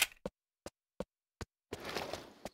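A rifle magazine clicks as it is changed.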